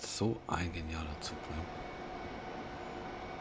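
A train rumbles along an elevated track.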